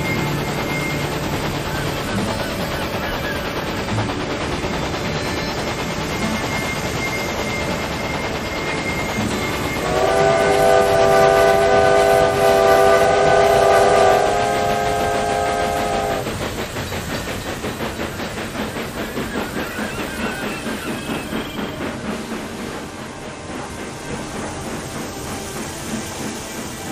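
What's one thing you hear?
A steam locomotive chugs steadily along.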